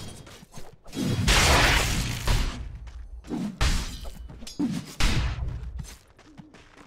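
Spell effects whoosh and crackle in loud bursts.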